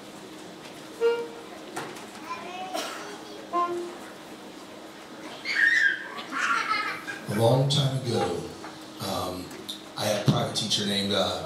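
Adults and children in an audience chat nearby, echoing in a large hall.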